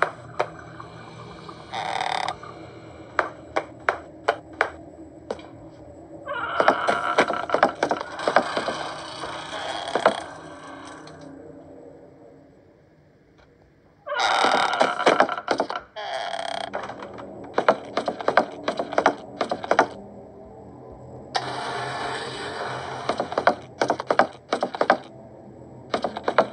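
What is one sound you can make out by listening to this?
Footsteps tap steadily across a floor in a video game.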